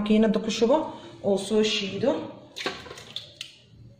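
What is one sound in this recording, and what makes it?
Liquid pours into a plastic jug.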